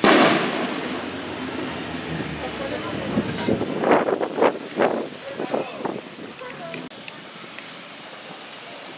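A crowd of men and women murmurs nearby outdoors.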